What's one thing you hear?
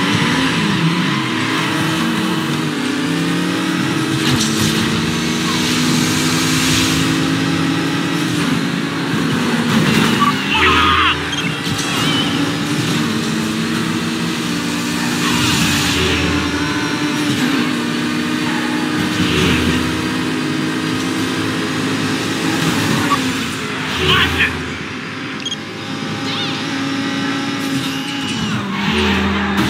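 A V12 sports car engine roars at full throttle, shifting up through the gears.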